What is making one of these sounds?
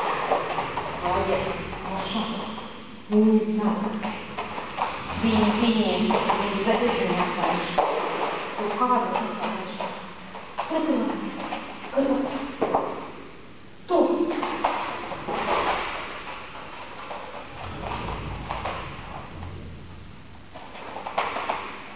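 A dog's paws patter and skitter on a wooden floor.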